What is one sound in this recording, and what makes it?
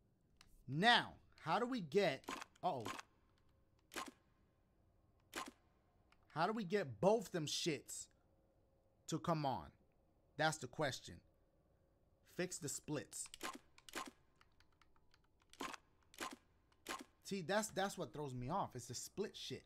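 A young man talks with animation close to a microphone, in bursts.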